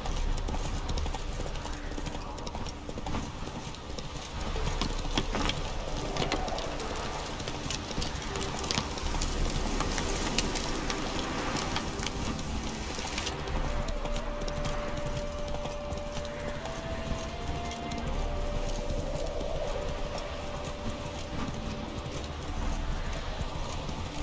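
Horse hooves gallop steadily on a dirt path.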